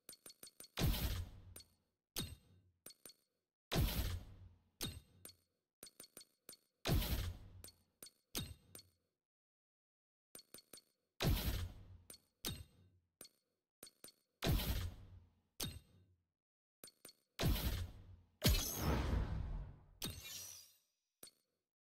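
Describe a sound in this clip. Whooshing swoosh sounds sweep as menu pages change.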